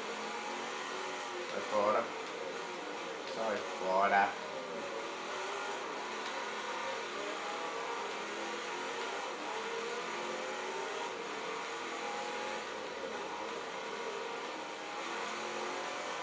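A racing car engine drones steadily through a loudspeaker, shifting up and down in pitch.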